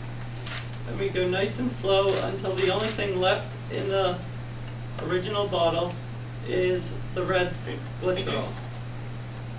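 A young man speaks calmly to a room, heard from a short distance.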